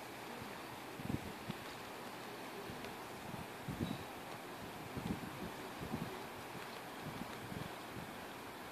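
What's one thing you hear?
Wind blows outdoors and buffets in short gusts.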